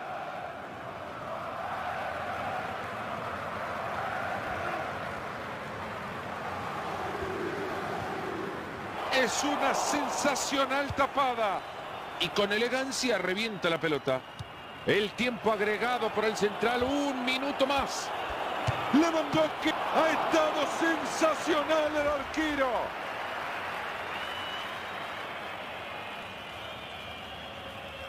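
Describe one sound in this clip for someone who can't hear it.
A large stadium crowd cheers and murmurs steadily.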